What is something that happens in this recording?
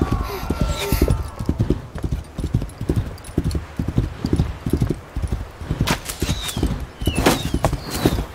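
Hooves gallop rapidly through snow.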